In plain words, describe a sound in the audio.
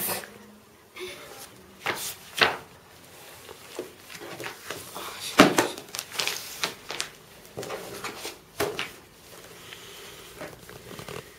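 Book pages rustle and flip as they are turned.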